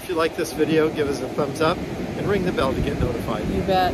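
An older man talks close by.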